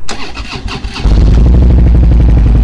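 A motorcycle engine starts up.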